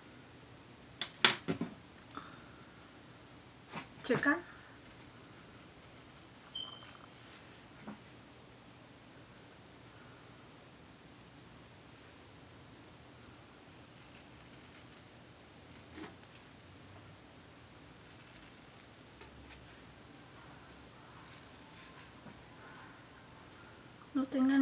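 Hands rustle against hair and clothing close by.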